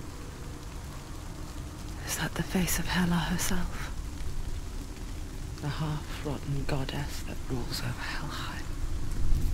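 Fire crackles softly in hanging braziers.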